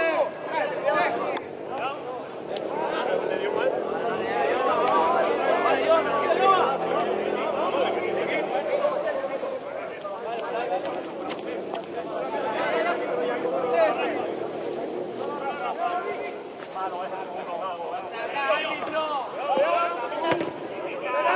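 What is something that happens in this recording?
Several men talk and shout close by outdoors.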